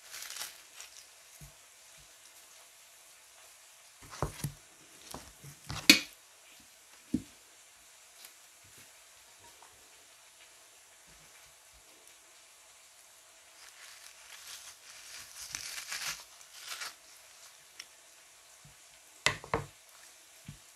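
A knife slices through raw meat.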